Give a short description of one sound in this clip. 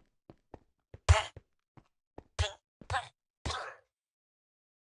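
A villager grunts as it is struck.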